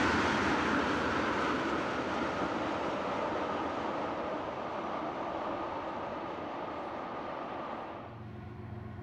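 Freight train cars rumble and clatter along the tracks, slowly fading.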